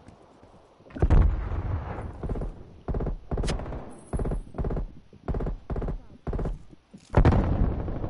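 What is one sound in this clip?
Quick footsteps thud on hard floors.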